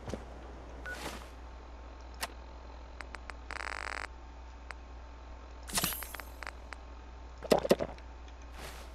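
A handheld device clicks and beeps as its buttons are pressed.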